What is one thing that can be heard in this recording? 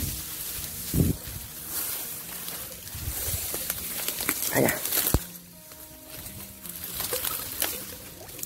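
A wire net trap scrapes against reeds.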